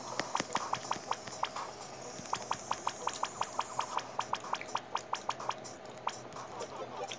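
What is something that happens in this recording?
Short electronic blips tick in a quick, steady rhythm.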